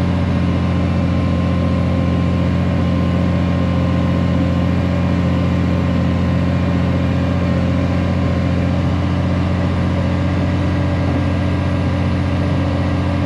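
Metal parts of a machine rattle and clank.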